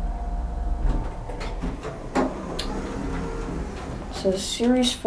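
An elevator hums low and steady.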